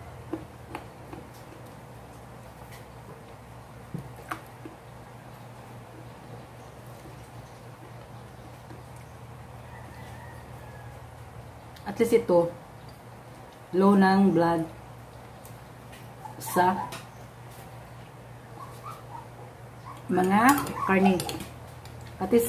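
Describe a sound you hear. A woman chews food.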